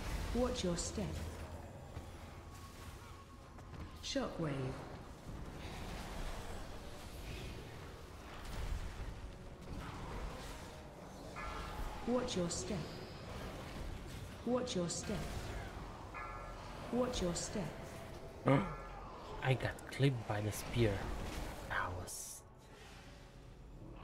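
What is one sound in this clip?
Fantasy battle sound effects clash, whoosh and boom.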